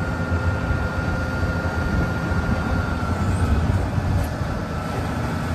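A heavy truck's diesel engine rumbles steadily close by.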